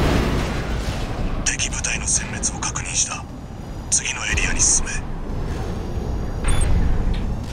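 Jet thrusters roar steadily with a low rumble.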